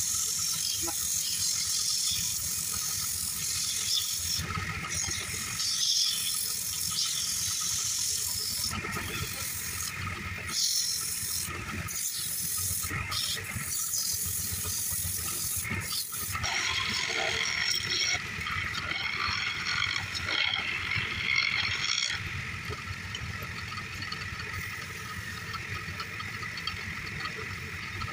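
A wood lathe whirs steadily as it spins.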